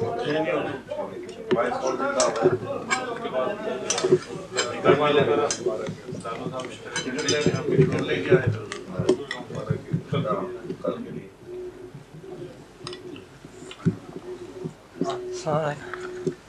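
Dishes and cutlery clink.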